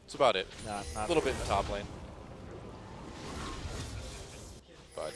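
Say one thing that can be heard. Spell effects in a video game crackle and whoosh as characters fight.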